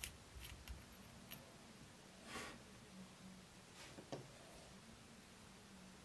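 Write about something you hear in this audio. A metal ring clinks as it is pulled off and put back.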